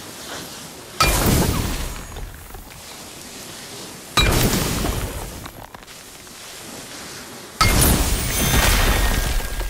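A fiery blast roars out in sudden, loud bursts.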